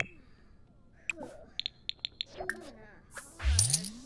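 A paintbrush dabs softly on a canvas.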